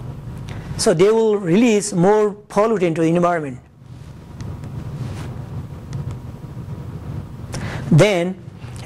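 A man speaks with animation into a microphone in an echoing room.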